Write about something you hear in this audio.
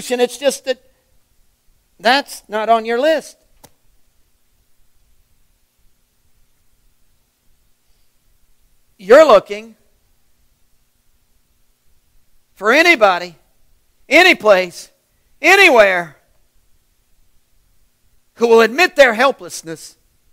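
A middle-aged man speaks with animation in short bursts, with long pauses between them, heard through a microphone.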